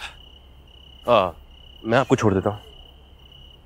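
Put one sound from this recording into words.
A young woman speaks tensely nearby.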